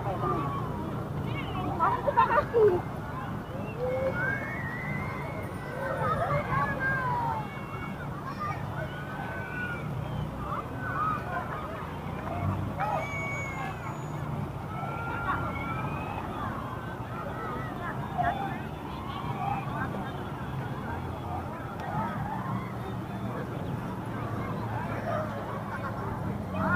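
Children shout and chatter at a distance across an open square outdoors.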